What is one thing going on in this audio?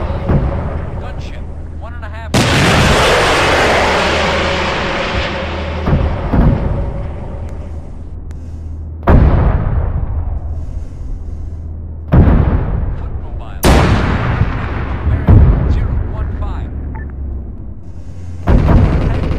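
Loud explosions boom and rumble, one after another.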